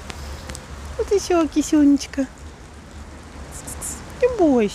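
A cat meows several times close by.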